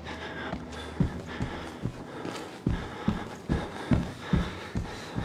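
Footsteps run heavily across a hard floor.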